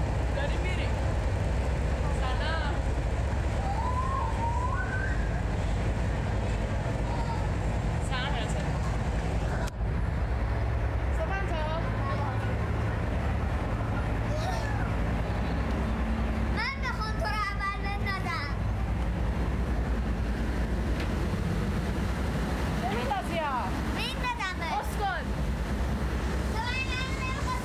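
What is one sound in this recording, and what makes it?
A young girl sings along close to a phone microphone.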